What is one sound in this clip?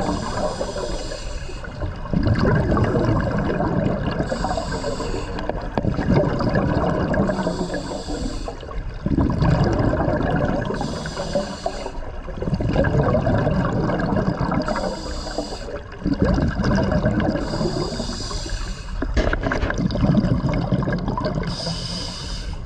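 A scuba regulator hisses with each inhaled breath underwater.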